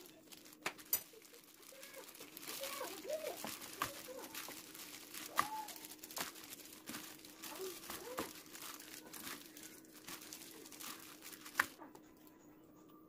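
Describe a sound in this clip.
A plastic glove rustles and crinkles as a hand mixes greens in a metal bowl.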